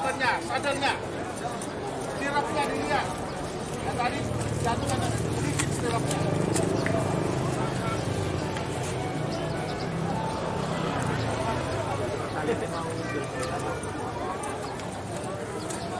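Men talk outdoors nearby.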